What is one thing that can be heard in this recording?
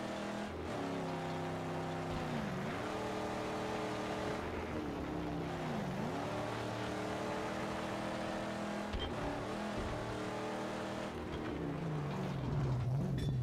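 A car engine drones steadily, its pitch dropping briefly at each gear shift.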